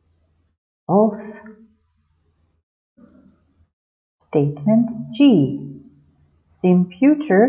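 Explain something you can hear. A woman speaks calmly into a microphone, as if reading out, heard close.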